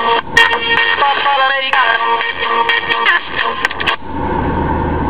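Pop music plays from a small device speaker.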